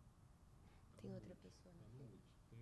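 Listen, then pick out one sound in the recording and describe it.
A woman speaks quietly into a microphone.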